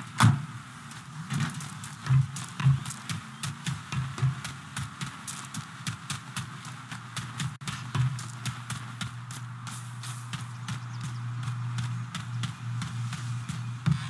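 Footsteps run quickly over gravel.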